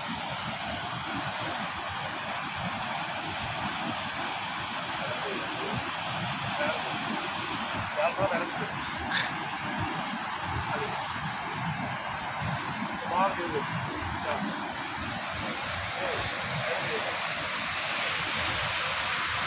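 A river rushes loudly over rocks nearby.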